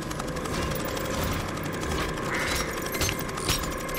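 A metal lock mechanism clicks and whirs as it is worked by hand.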